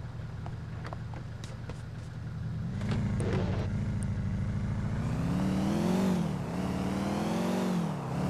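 A car engine hums and then revs higher as the car speeds away.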